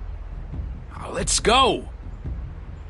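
A young man speaks curtly.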